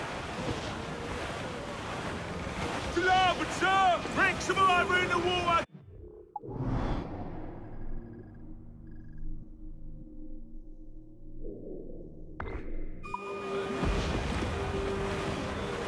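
Ocean waves rush and splash around a sailing ship.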